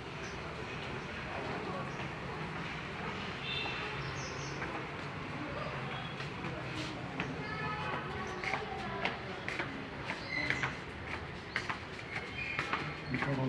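Footsteps shuffle along a hard floor.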